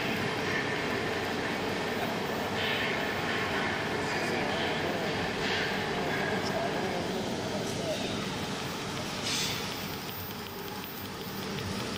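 A welding arc hisses and crackles steadily.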